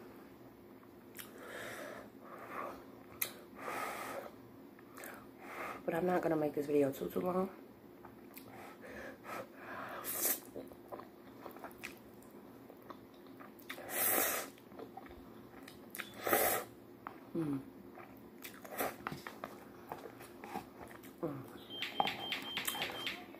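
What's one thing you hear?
A young woman chews noisily.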